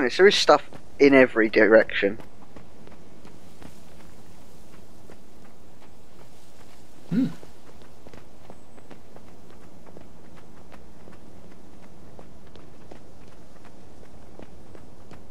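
Footsteps patter quickly along a dirt path.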